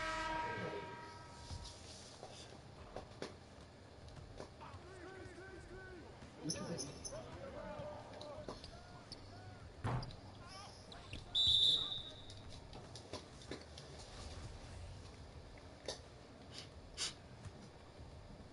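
Sneakers squeak on a basketball court.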